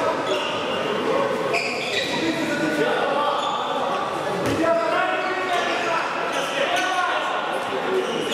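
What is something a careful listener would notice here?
Men call out to each other in an echoing hall.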